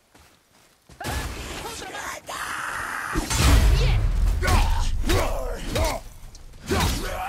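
Blows and clashes ring out loudly in a fight.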